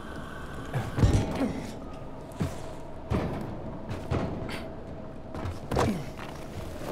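Hands grab and thump on metal while climbing.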